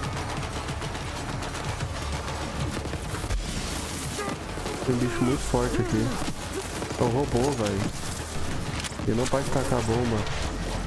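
Gunfire and energy blasts from a video game rattle throughout.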